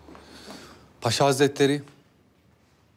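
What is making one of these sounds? A man speaks briefly and firmly, close by.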